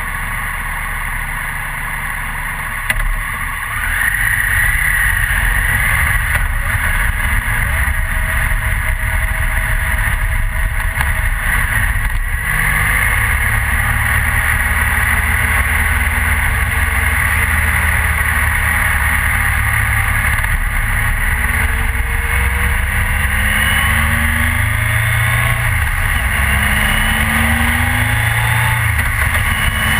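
A motorcycle engine hums steadily and revs up and down as it rides.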